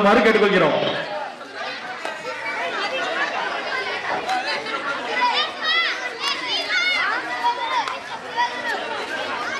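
Children chatter quietly nearby.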